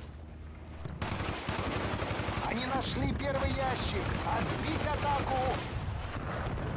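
A rifle fires a quick series of shots.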